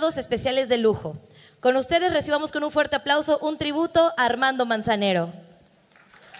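A young woman speaks with animation through a microphone over loudspeakers.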